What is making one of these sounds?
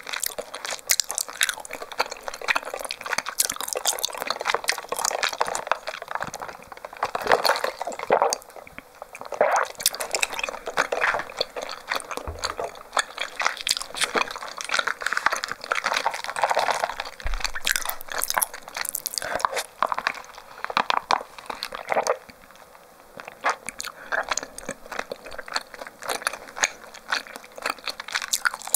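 A young woman chews and swallows close to a microphone.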